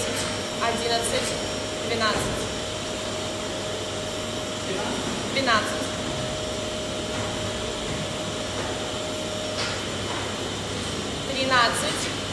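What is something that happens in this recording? A man's feet thud softly on a floor as he drops from a bar.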